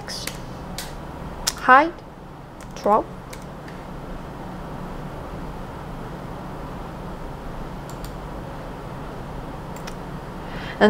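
Computer keys and a mouse click now and then.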